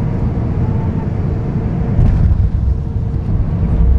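Tyres thump onto a runway as an airliner touches down.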